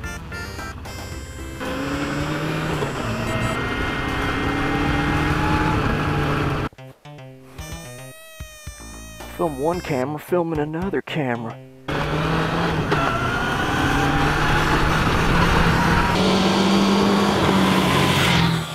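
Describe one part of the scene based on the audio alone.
A motorcycle engine hums and revs up and down.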